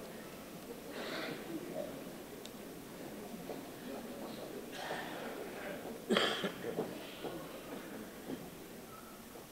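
Footsteps and knocks sound on a wooden stage as furniture is set down.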